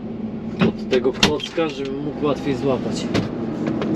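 A cab door clicks open.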